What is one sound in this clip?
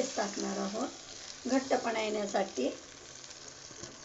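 Water pours into a sizzling pan.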